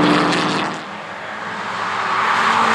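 A racing car engine drones past close by and fades.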